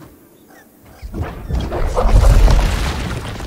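A heavy creature crashes down with a deep, rumbling thud.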